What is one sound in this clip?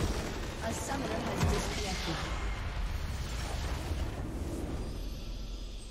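A huge structure explodes with a deep boom.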